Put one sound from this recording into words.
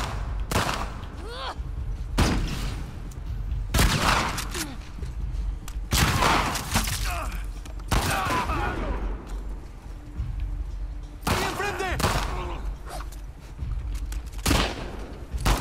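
Gunshots crack loudly, each followed by a ringing echo.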